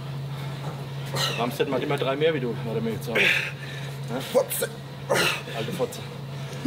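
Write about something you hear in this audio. A man groans and grunts with strain close by.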